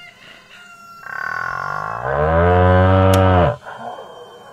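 A cow moos loudly.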